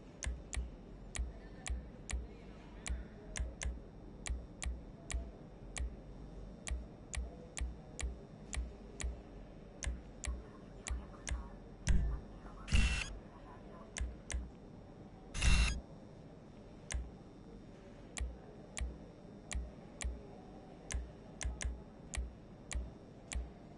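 Short game menu clicks tick over and over at an uneven pace.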